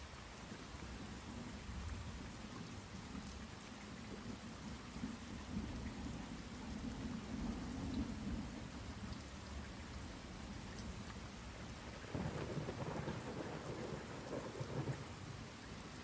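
A young man speaks quietly and calmly into a microphone.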